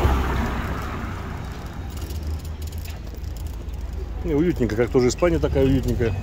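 A car drives slowly past on the street.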